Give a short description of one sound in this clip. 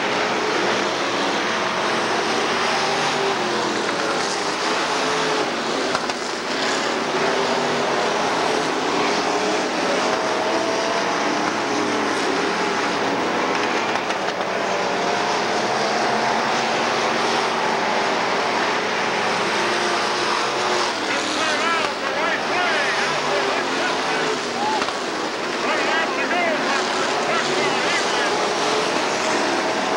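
Race car engines roar loudly around a track.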